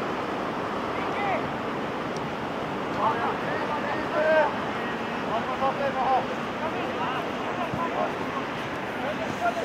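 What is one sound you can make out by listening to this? Football players shout to each other across the pitch.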